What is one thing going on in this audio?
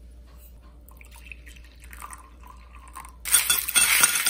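Water pours into a glass mug.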